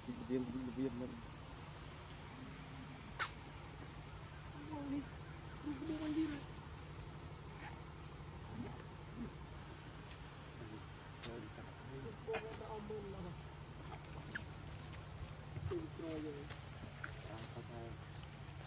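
Young monkeys give short, high squeaks now and then.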